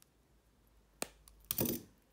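Wire cutters snip through thin wire with a sharp click.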